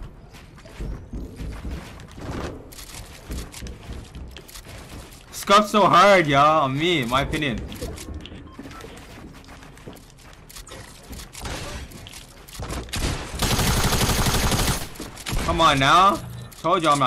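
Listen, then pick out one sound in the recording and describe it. Rapid clicks and thuds of building and gunfire sound from a video game.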